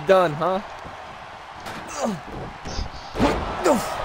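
A heavy thud sounds as a body slams onto a wrestling mat.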